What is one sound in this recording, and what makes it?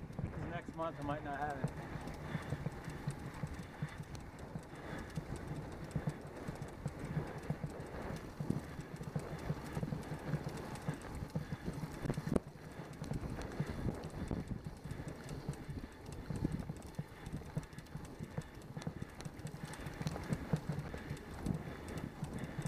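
Wind rushes loudly over a bike-mounted microphone.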